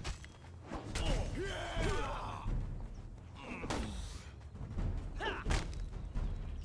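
Fighters grunt and cry out in effort.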